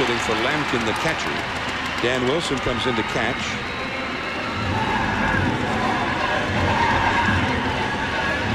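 A stadium crowd murmurs and cheers in the background.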